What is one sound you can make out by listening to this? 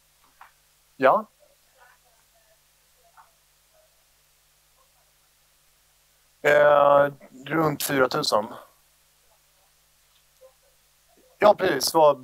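A man speaks calmly through a microphone in a large room, with pauses.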